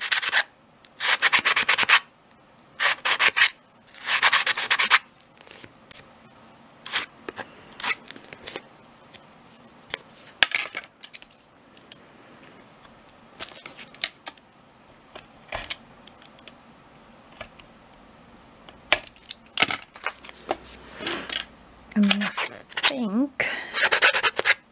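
Thick paper rustles and scrapes as hands handle it.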